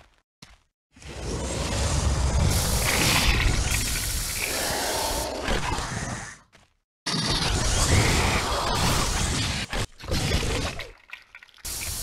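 Game creatures clash in battle with screeches and thuds.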